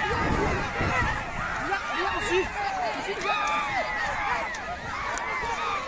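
Men nearby shout at the bulls.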